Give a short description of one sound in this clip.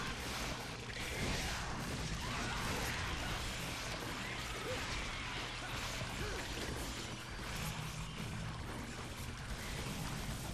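Gunshots blast rapidly in bursts.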